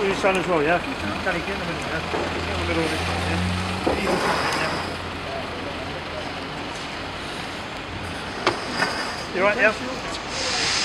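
A man speaks with animation nearby.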